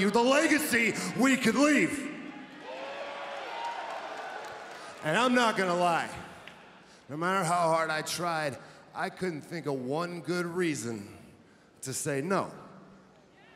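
A man speaks forcefully into a microphone, heard over loudspeakers in a large echoing arena.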